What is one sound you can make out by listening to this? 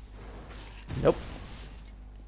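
A sword clangs in a sharp hit.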